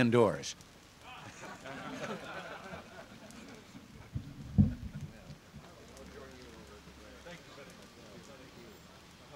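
People murmur and chat nearby.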